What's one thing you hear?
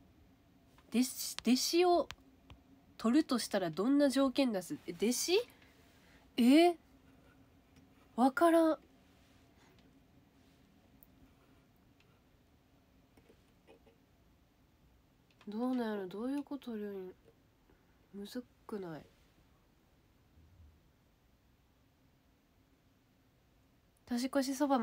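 A young woman talks casually and close by, with pauses.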